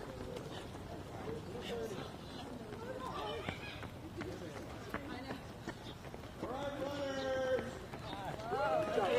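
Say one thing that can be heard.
Men and women talk and call out nearby outdoors.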